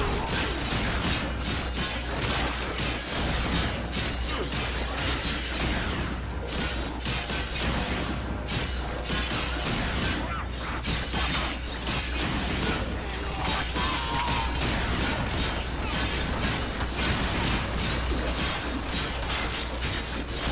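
Rapid energy weapon blasts crackle and zap.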